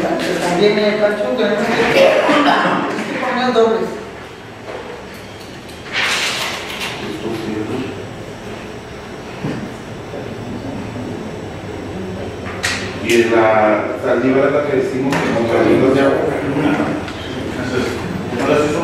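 A man speaks calmly across a meeting table.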